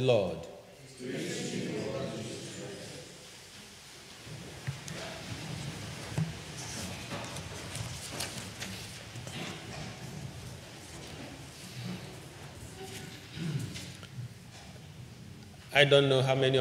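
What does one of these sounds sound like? A young man reads aloud quietly through a microphone.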